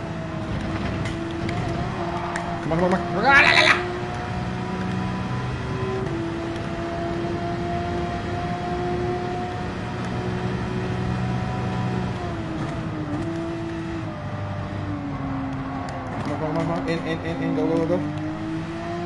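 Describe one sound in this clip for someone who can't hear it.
A racing car engine roars steadily at high revs, dropping in pitch as the car slows for a bend.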